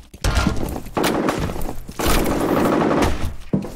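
Rapid gunfire bursts from a game.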